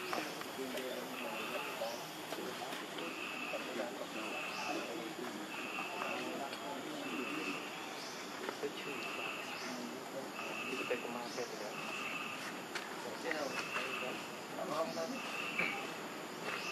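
A baby monkey suckles softly.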